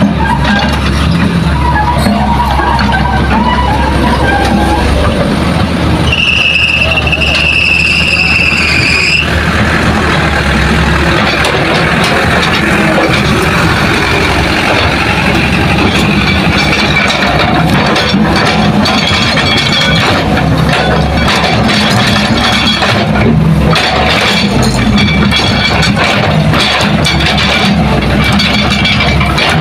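A truck engine rumbles and revs as the truck drives off.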